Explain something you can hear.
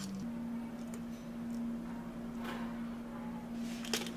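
Coffee pours softly into glasses.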